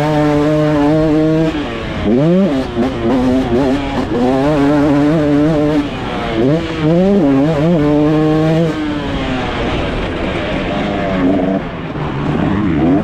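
A dirt bike engine revs and roars up close, rising and falling in pitch as it shifts gears.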